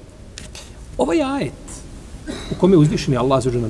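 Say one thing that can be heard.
An elderly man recites aloud in a melodic voice, close to a microphone.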